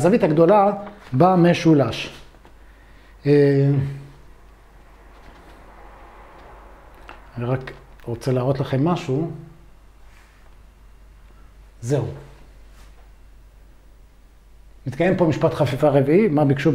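A man speaks calmly in short phrases with pauses, close by.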